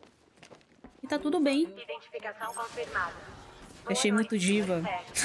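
A young woman talks animatedly, close to a microphone.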